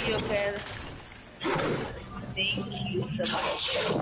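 A pickaxe swings through the air with a whoosh.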